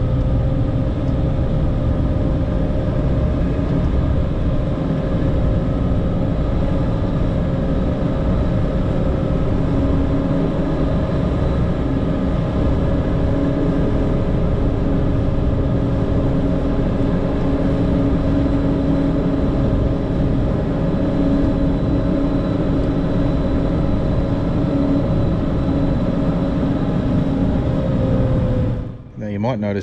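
Snow scrapes and hisses against a plough blade.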